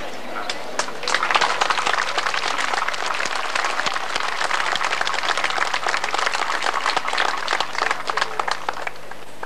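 An outdoor crowd applauds.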